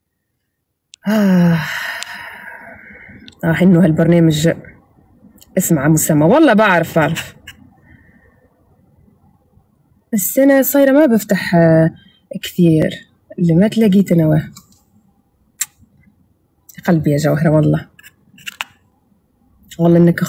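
A young woman talks close by in short phrases, with pauses between them.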